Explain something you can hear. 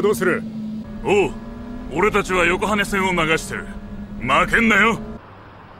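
A man answers over a phone with animation.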